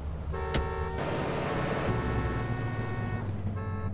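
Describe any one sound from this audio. A car engine revs and the car drives off.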